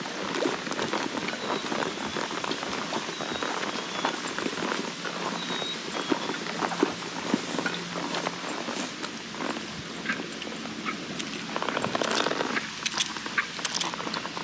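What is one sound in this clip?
Horse hooves thud through tall grass at a steady walk.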